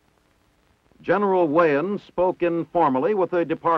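A middle-aged man speaks calmly, close by.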